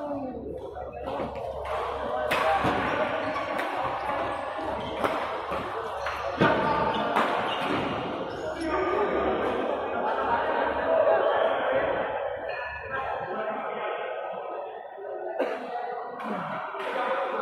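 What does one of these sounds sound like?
Shuttlecocks are struck with rackets in sharp pops.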